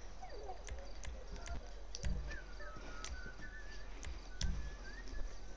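Short game menu clicks tick now and then.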